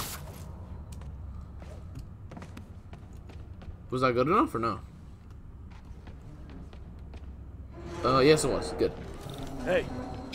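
Soft footsteps tread on a hard floor.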